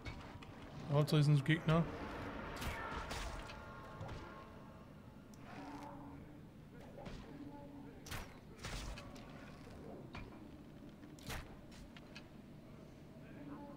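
A bowstring creaks as a bow is drawn.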